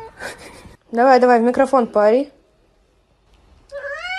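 A cat meows into a microphone.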